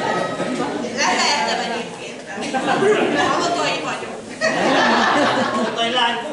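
A group of men and women sing together.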